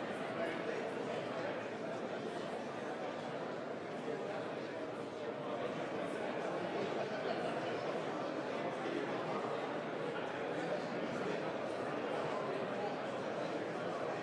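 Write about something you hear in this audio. A crowd of men and women chatter at once in a large echoing hall.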